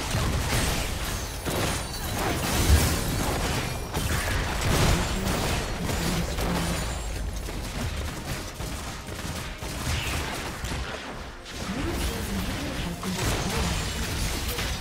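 Magic blasts and hits crackle in a fast video game battle.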